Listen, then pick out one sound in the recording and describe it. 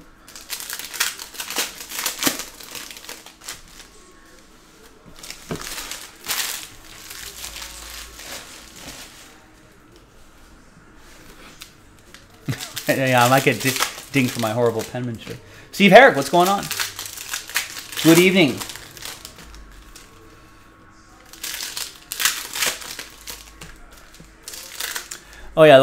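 Foil card packs crinkle and rustle in hands.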